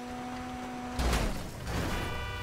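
A car crashes into a truck with a loud bang.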